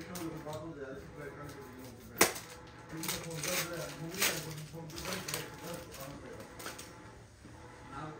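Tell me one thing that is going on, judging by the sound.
A knife scrapes and slices through packing tape.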